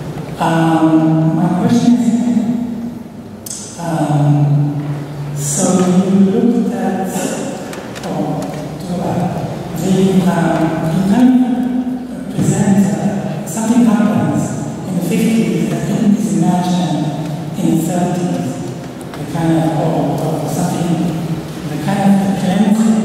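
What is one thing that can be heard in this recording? A middle-aged woman speaks calmly into a microphone in an echoing hall.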